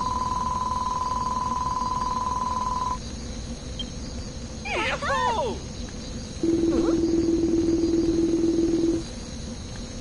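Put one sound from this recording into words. A video game's dialogue text ticks out with a rapid, steady electronic beeping.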